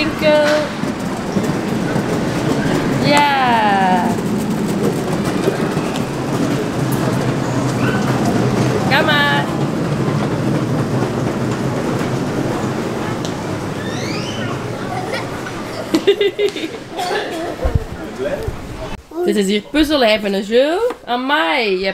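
A young child calls out and babbles in a high voice close by.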